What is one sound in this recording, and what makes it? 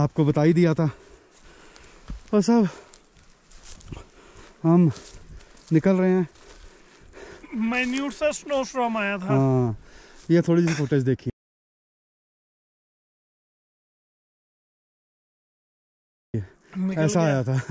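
A man speaks calmly close to the microphone, outdoors.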